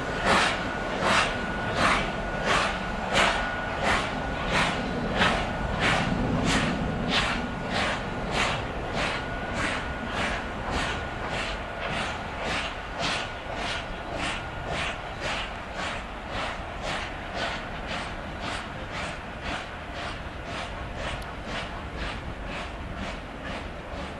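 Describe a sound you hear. A train's wheels rumble along the rails.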